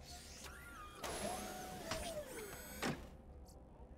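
A treasure chest whirs and clanks open.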